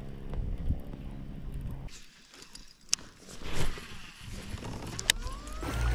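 A fishing reel clicks as line is reeled in.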